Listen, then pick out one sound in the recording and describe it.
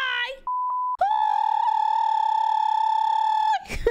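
A young woman sings a long, steady high note.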